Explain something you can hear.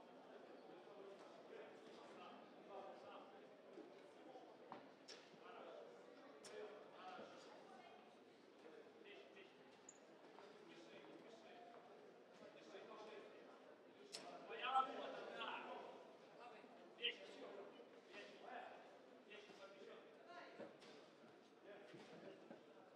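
A crowd murmurs and shouts in a large hall.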